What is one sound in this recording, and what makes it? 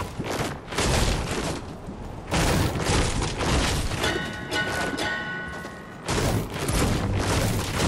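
A blade swishes and strikes in quick slashes.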